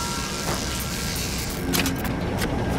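Electricity crackles and buzzes sharply.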